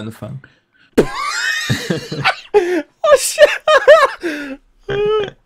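Men laugh loudly over microphones.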